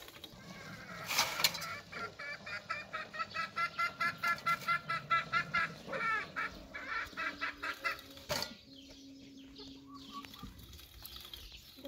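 A knife cuts through vegetables.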